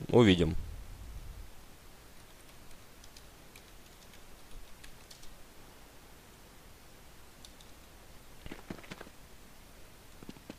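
Footsteps tread lightly on a hard floor.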